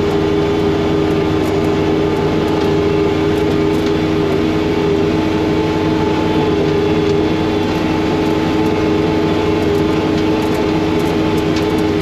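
A snowblower engine drones steadily up close.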